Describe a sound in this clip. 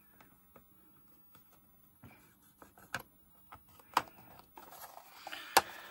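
A plastic cartridge shell clicks and snaps as it is pressed shut.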